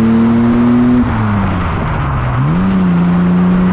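A Jaguar E-Type's straight-six engine drops revs and picks up again through a gear change.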